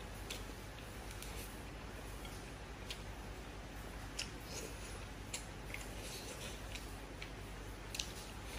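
A young woman slurps noodles loudly, close to a microphone.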